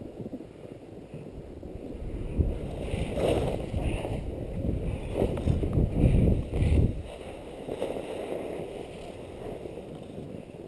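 Wind rushes loudly past close by.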